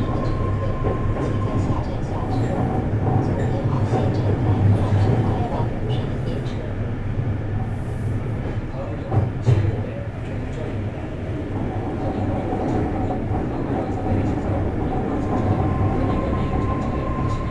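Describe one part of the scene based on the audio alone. An idling electric train hums steadily.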